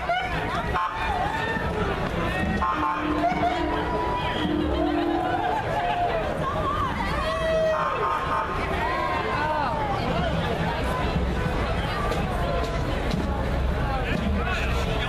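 A crowd of people cheers and shouts outdoors.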